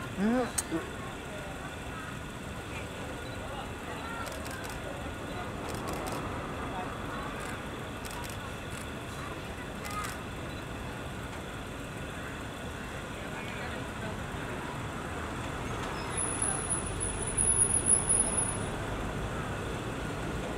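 A crowd of people murmurs outdoors.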